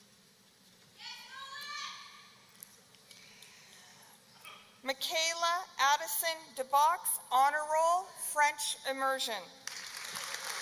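A woman announces names through a loudspeaker in a large echoing hall.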